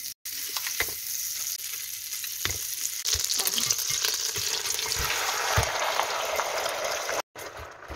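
Butter sizzles in a hot pot.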